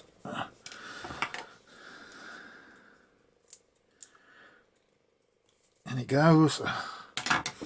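Small plastic caps click as they are pushed onto metal clips.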